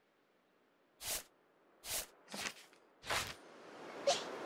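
Short whooshing sound effects play in quick succession as a game menu closes.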